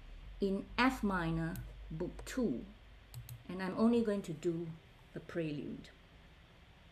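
A woman speaks calmly through a computer microphone.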